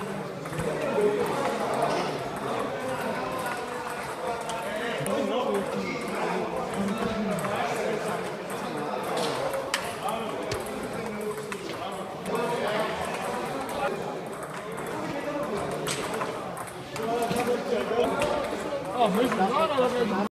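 Ping-pong balls click against paddles and tables.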